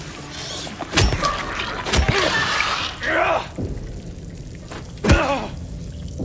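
A metal pipe strikes a body with heavy thuds.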